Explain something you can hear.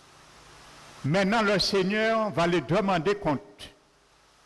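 A man speaks with animation through a microphone in a room with some echo.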